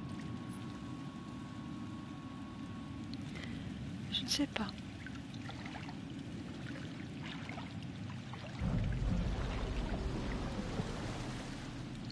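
Water splashes and sloshes as a man wades through it.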